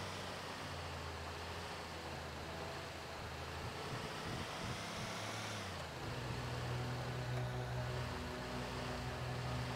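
A truck engine rumbles steadily as it drives along a road.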